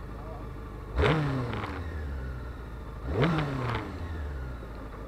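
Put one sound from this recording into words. An inline-four sport bike engine revs sharply twice.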